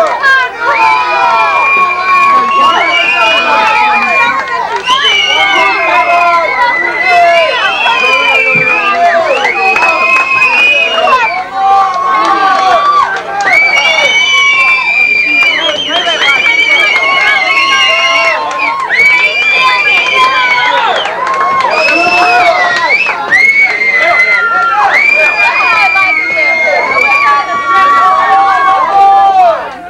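A crowd sings loudly together.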